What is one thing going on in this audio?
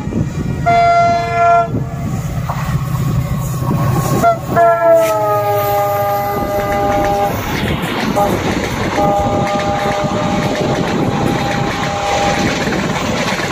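A locomotive horn blares loudly several times.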